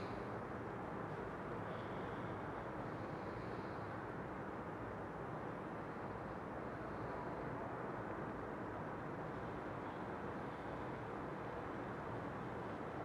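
A fire crackles and hisses steadily close by.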